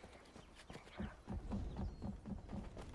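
Footsteps thud on hollow wooden boards.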